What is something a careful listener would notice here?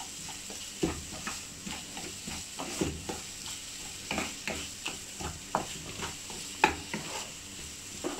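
A wooden spatula scrapes and knocks against a metal pan as thick food is stirred.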